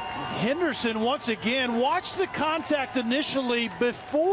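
A large crowd cheers in a stadium.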